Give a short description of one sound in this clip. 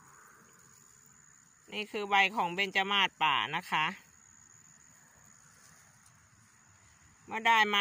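Leaves rustle as a hand picks them.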